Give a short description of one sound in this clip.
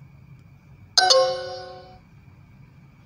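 A short electronic tone chimes from a phone.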